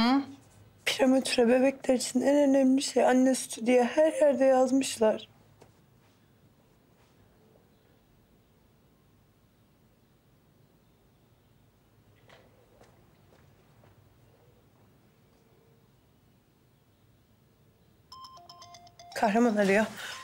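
A young woman speaks in a soft, emotional voice close by.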